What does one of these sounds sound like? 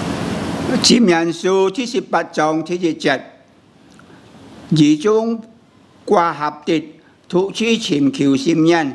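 An elderly man reads aloud calmly and slowly into a close microphone.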